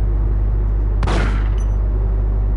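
A loud blast bursts and trails off with a rushing hiss.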